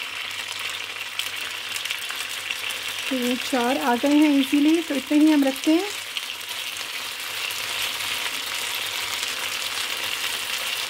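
Meat sizzles softly in a hot pan.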